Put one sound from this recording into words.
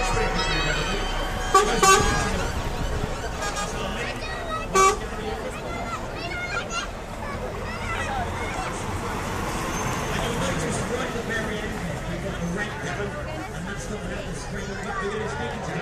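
A truck engine rumbles as the truck drives slowly past close by.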